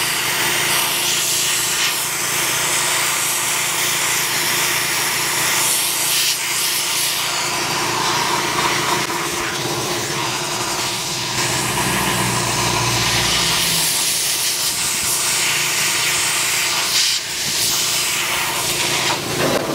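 A welding gun crackles and hisses against sheet metal.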